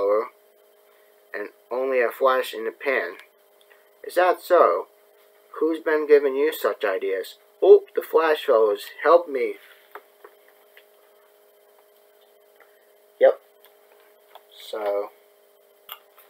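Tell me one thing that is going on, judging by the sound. A young man talks casually, close to a laptop microphone.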